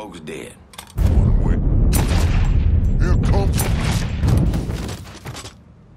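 Rapid gunshots fire loudly close by.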